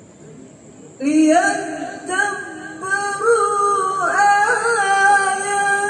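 A woman chants in a drawn-out, melodic voice through a microphone and loudspeakers.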